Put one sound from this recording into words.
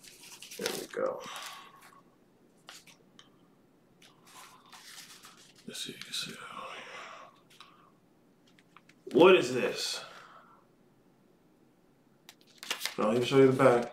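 A paper banknote crinkles and rustles in a man's hands.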